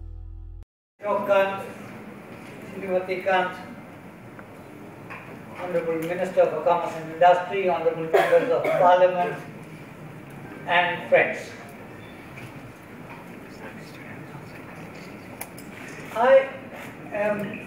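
An elderly man speaks slowly and calmly into a microphone.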